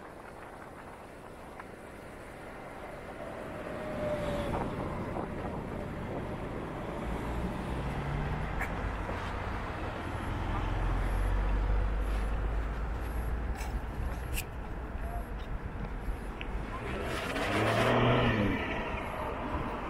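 A motorcycle engine hums and rumbles.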